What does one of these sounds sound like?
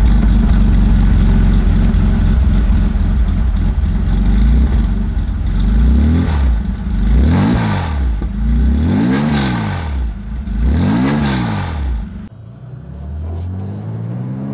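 A sports car engine idles with a deep, rumbling burble.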